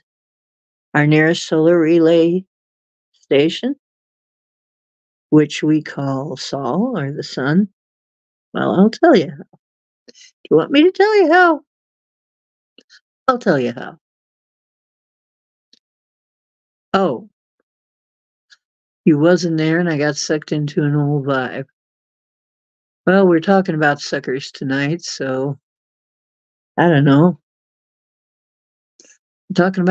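An older woman speaks with animation in short bursts, close to a microphone, with pauses between.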